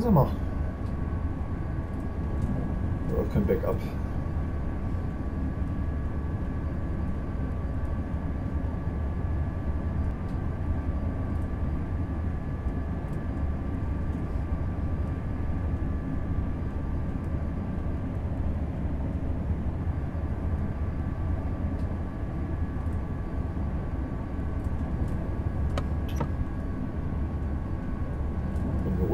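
A train's motor hums with a steady whine.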